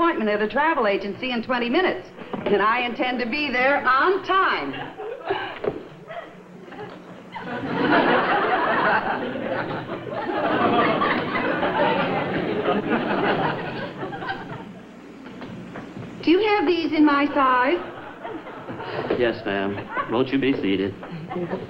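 A woman speaks brightly, heard through an old, thin-sounding recording.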